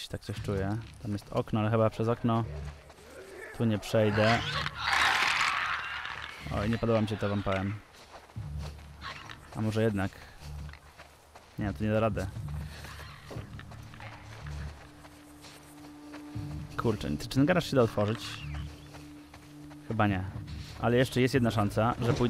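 Footsteps rustle through tall dry grass.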